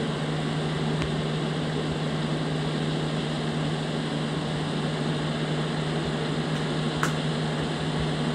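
A simulated diesel semi-truck engine drones steadily while cruising.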